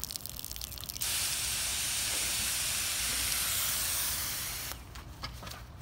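Water sprays hard from a garden hose nozzle.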